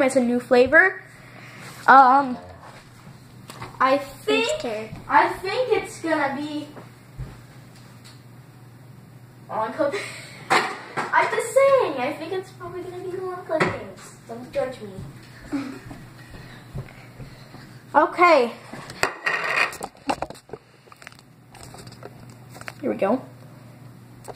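A young girl talks close by, in a sulky, drawn-out voice.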